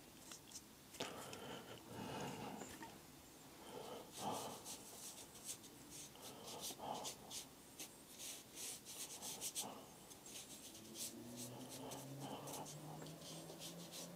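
A brush dabs and strokes softly across paper.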